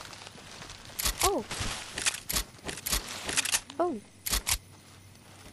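Footsteps rustle through dense bushes.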